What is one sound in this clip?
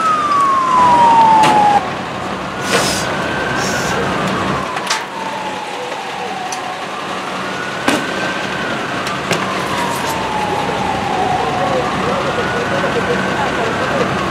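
A large crowd shouts and clamours outdoors.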